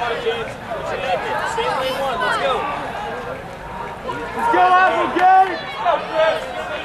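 A crowd of spectators cheers and shouts encouragement outdoors.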